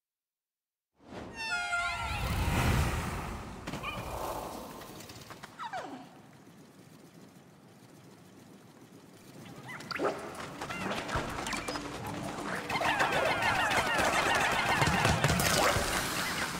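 Many small creatures chirp and squeak in high voices.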